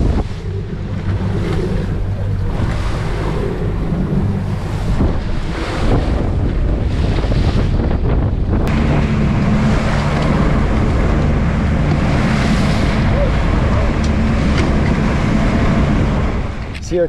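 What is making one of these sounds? Wind rushes past, buffeting loudly.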